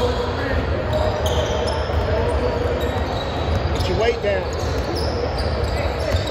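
A crowd of young people chatters in a large echoing hall.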